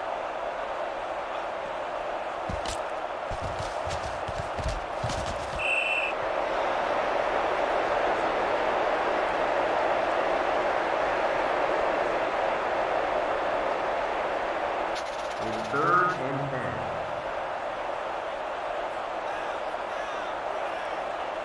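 A stadium crowd roars steadily in the distance.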